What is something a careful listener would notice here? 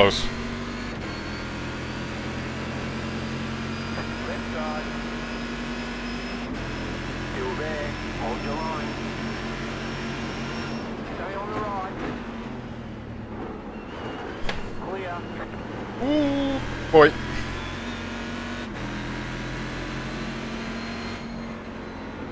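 A race car engine roars steadily, dropping and rising in pitch as gears change.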